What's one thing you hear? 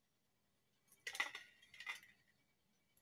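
A pin taps and scratches on an eggshell.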